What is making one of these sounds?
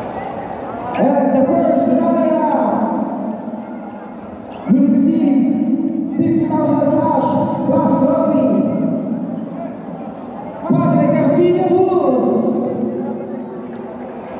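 A man speaks loudly through a loudspeaker in a large echoing hall.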